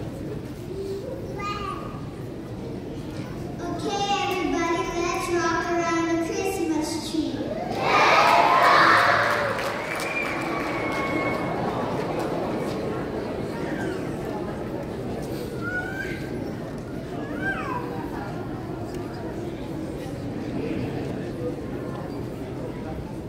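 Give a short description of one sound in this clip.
A piano plays.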